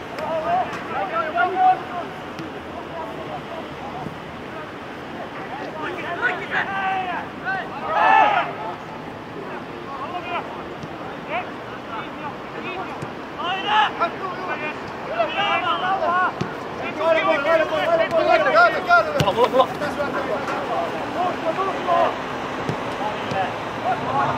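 Young men shout and call to each other across an open outdoor field.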